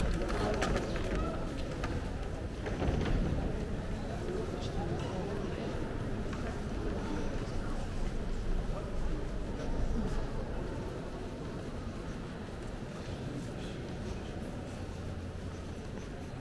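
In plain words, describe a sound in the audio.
Distant voices murmur and echo in a large, reverberant hall.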